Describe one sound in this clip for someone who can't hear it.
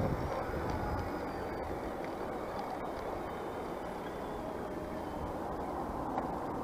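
Wind rushes and buffets steadily.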